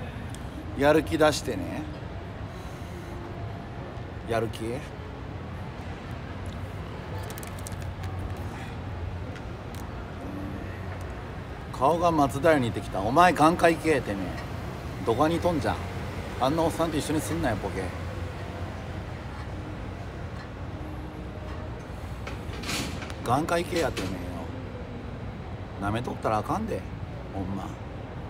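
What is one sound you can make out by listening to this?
A young man speaks casually and close to the microphone, with pauses.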